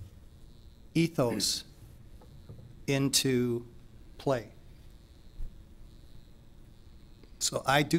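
A middle-aged man speaks calmly in short phrases through a microphone.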